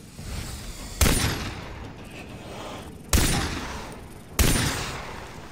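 A pistol fires loud single shots.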